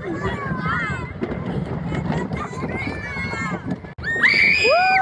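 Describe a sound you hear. A roller coaster car rumbles and rattles along a wooden track.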